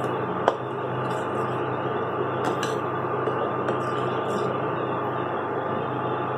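A thick sauce bubbles and sizzles in a pot.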